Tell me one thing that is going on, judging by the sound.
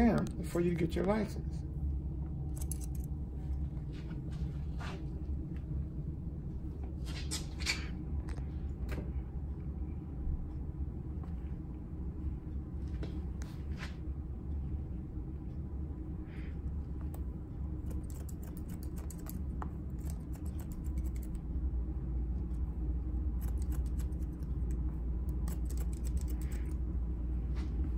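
Scissors snip through hair in quick, crisp cuts.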